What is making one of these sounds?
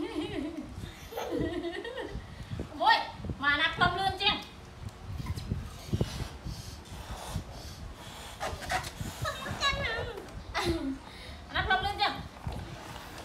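A woman talks cheerfully nearby.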